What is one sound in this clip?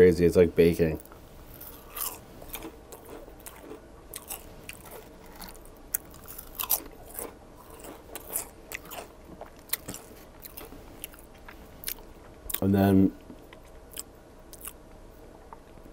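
Fingers tap and rustle crispy food with small crackles.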